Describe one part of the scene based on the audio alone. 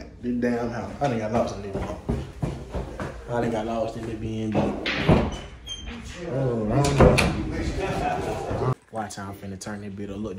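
A young man talks animatedly close to the microphone.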